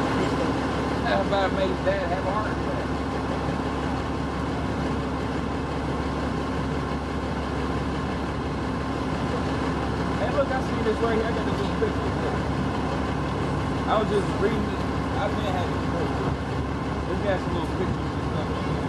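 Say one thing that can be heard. A man speaks nearby in short bursts outdoors.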